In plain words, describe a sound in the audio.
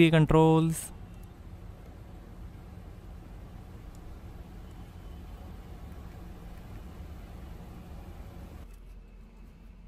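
A control dial clicks as a hand turns it.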